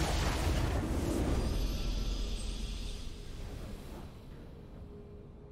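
A triumphant game fanfare swells and fades out.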